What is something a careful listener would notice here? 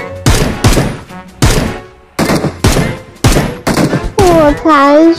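Gunshots from a video game fire in quick bursts.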